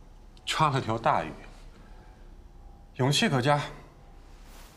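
A man speaks calmly and briefly, close by.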